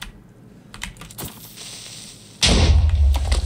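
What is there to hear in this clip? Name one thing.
A creature hisses.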